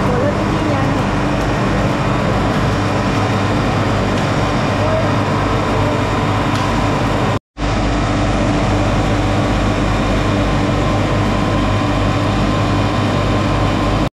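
Olives rattle and tumble along a conveyor belt.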